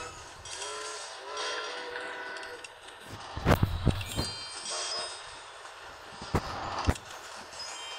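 Cartoon trains crash together with loud bangs.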